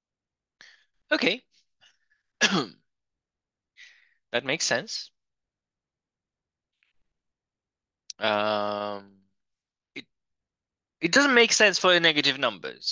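A man speaks calmly through a microphone on an online call, pausing often.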